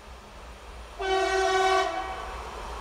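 A locomotive horn blows loudly.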